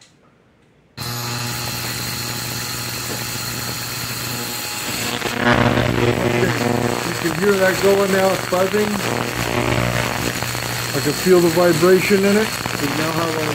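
An electrical device hums and whines steadily.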